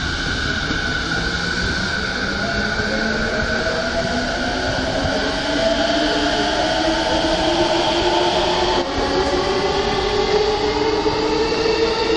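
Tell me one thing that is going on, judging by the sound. An electric commuter train whines and rises in pitch as it pulls away.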